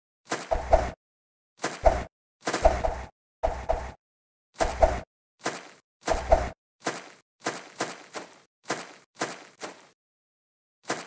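A game character's jumps land with repeated short thuds.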